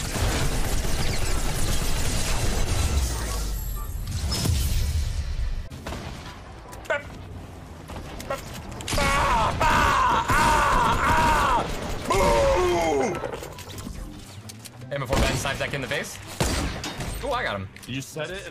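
Gunshots crack from a video game.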